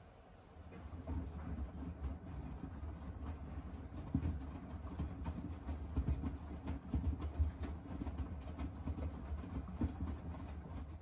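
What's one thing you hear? A washing machine drum turns with a low, steady rumble.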